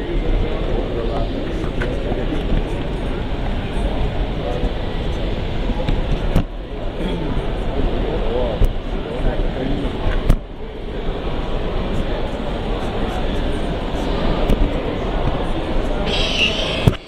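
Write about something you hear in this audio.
A crowd of men and women chatters in a large echoing hall.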